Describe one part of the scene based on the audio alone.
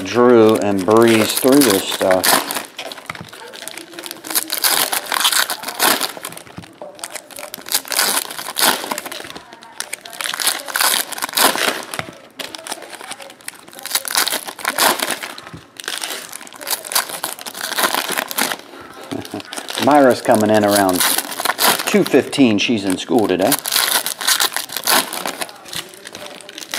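Foil wrappers crinkle and rustle as they are torn open.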